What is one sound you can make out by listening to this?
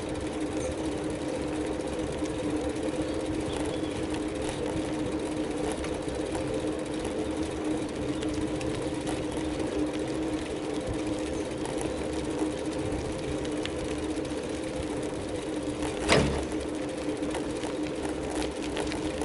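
Tyres roll over rough asphalt with a rumbling hiss.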